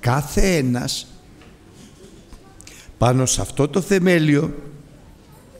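A middle-aged man speaks with emphasis into a microphone, with pauses.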